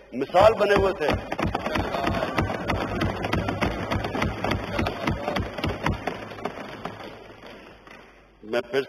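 A crowd applauds and thumps desks.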